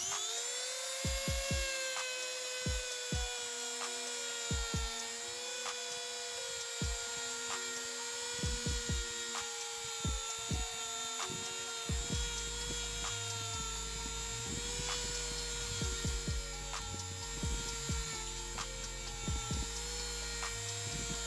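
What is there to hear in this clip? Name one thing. A cutting disc grinds and scrapes against metal.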